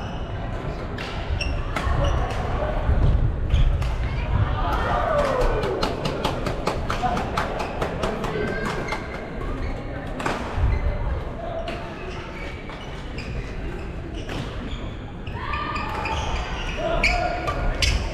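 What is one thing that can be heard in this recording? Young people call out to one another across the hall.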